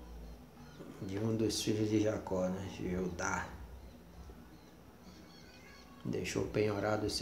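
A middle-aged man speaks calmly and close up.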